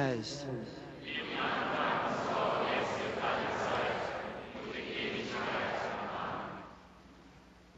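A large crowd murmurs a prayer in unison.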